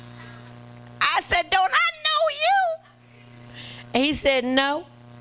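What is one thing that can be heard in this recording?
A woman speaks with animation through a microphone in a large room, with echo.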